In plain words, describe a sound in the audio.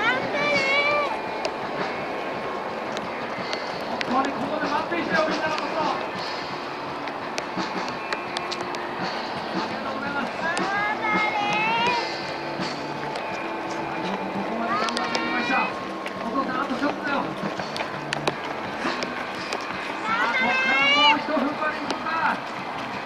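Men and women shout and cheer nearby, outdoors.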